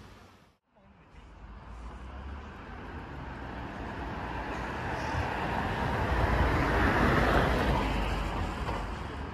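A bus engine rumbles as the bus pulls away.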